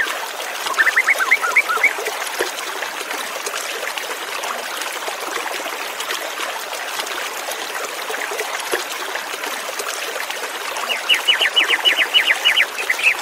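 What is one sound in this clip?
A white-rumped shama sings in quick trills.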